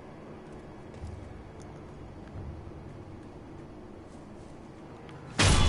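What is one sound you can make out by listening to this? Footsteps crunch over snowy ground.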